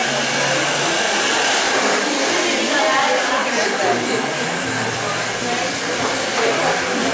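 Several young women chatter and talk over each other in a busy, noisy room.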